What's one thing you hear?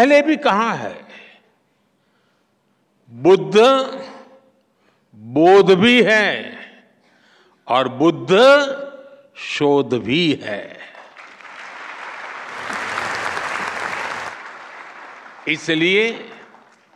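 An elderly man speaks forcefully through a microphone.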